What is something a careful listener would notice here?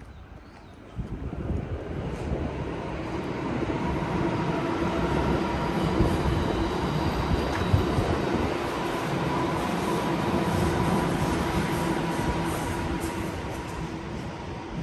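A train rumbles past on an elevated track nearby, rising and then slowly fading.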